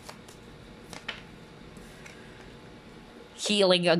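A card is laid down on a table with a soft tap.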